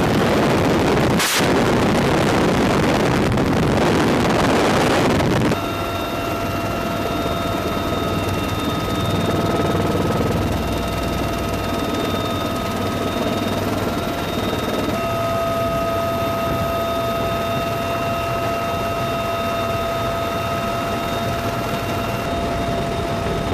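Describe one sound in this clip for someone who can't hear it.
A helicopter engine drones and whines steadily.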